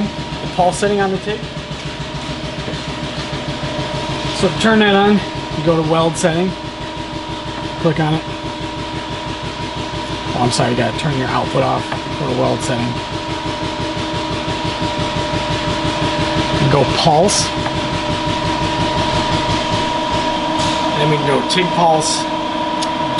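A man talks calmly nearby, explaining.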